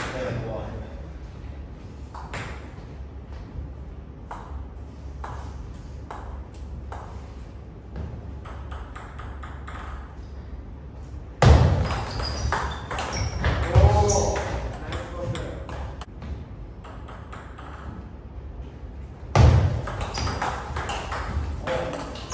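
A ping-pong ball clicks back and forth between paddles and a table.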